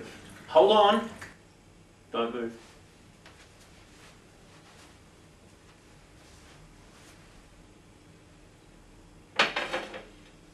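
Liquid pours from a jug into a glass.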